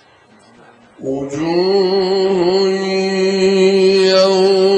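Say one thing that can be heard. A man chants loudly in a long, held melodic voice through a microphone.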